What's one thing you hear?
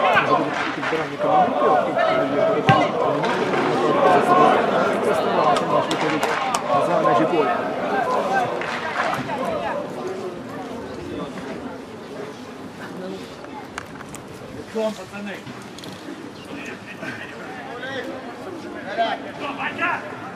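Men call out to each other on an open field.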